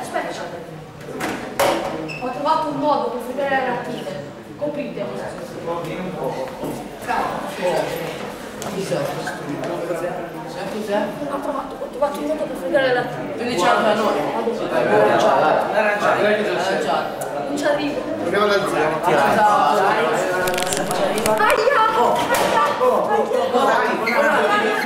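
Teenage boys talk and banter loudly nearby.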